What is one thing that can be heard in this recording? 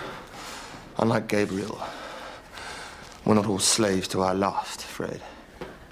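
A young man grunts and breathes hard nearby.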